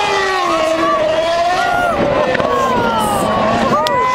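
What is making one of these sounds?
Tyres screech as a racing car spins doughnuts.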